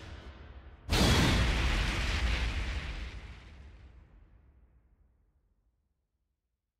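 A deep booming impact hits and rumbles away.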